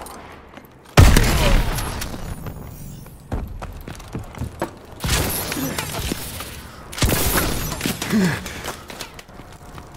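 Rapid gunfire rings out in loud bursts.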